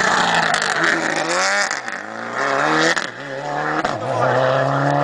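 A rally car engine roars and revs hard through rising gear changes.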